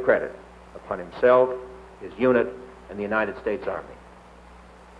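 A man reads out through a microphone in a room with some echo.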